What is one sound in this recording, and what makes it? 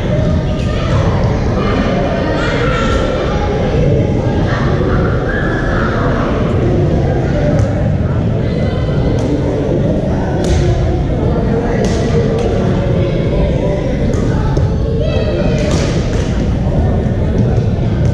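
Paddles pop against plastic balls in a large echoing gym.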